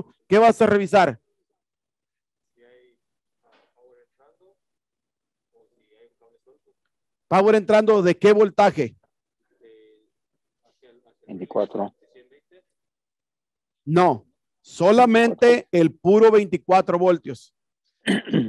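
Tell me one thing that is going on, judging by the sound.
A man speaks calmly through a headset microphone, in bursts with pauses.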